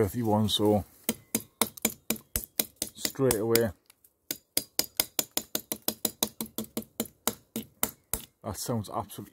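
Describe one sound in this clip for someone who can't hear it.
A knife taps against a tree trunk.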